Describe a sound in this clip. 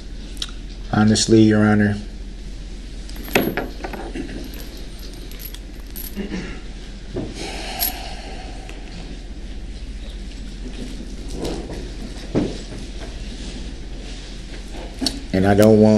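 An adult man speaks in short bursts between long pauses.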